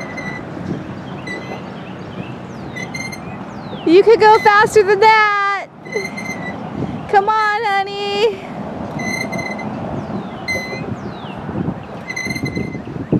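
Swing chains squeak rhythmically as a swing moves back and forth.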